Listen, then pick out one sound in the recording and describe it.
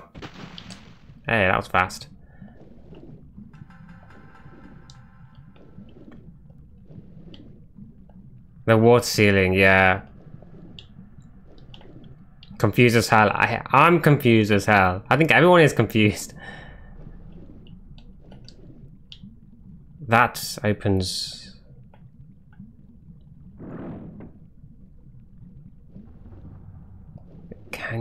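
Bubbles gurgle underwater as a swimmer moves through the water.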